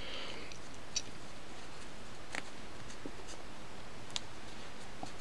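Small beads click lightly.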